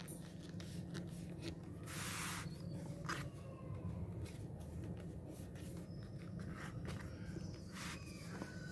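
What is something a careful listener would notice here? Paper rustles and crinkles as hands fold it.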